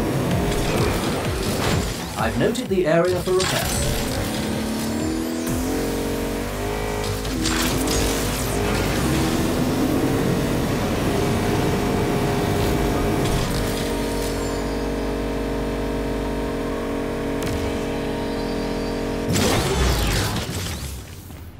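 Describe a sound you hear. A sports car engine roars and revs at speed.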